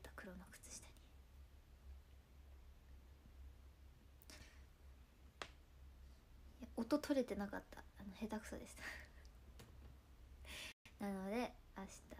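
A young woman speaks softly and casually into a nearby microphone.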